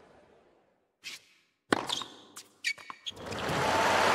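A tennis ball is struck sharply with a racket and bounces.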